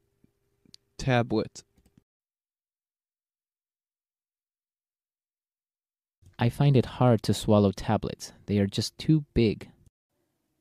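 A man speaks clearly and calmly into a microphone.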